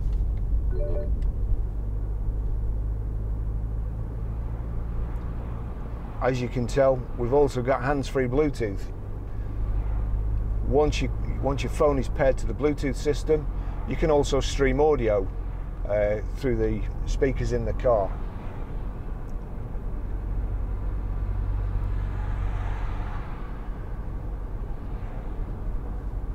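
A car engine hums steadily with road rumble while driving.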